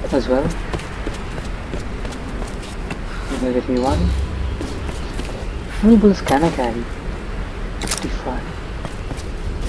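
Footsteps run over stone and grass.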